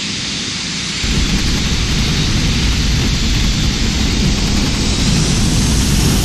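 Airliner tyres touch down and rumble along a runway.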